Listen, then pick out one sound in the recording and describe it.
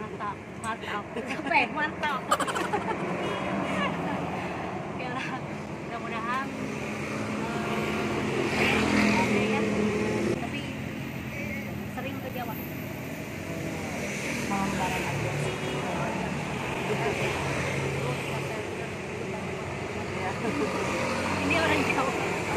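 Two women laugh together.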